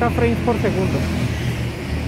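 A young man speaks close to the microphone.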